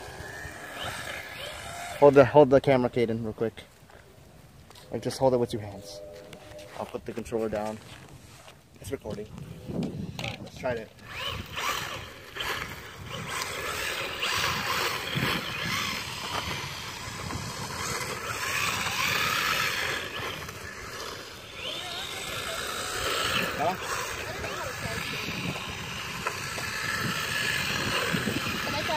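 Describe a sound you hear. Small plastic wheels rumble over rough asphalt.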